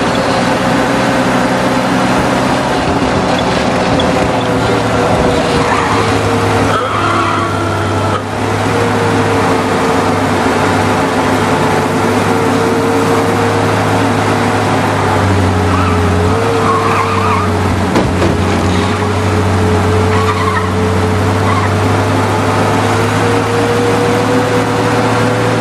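An old car engine hums steadily as the car drives along.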